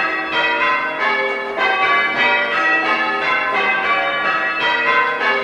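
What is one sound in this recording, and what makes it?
Church bells ring in quick rounds, overlapping with a long echoing ring.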